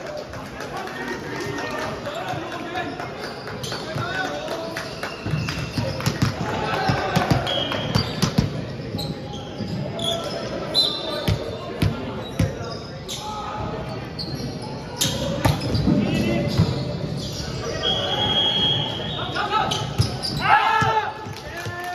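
Players and spectators call out and chatter in a large echoing hall.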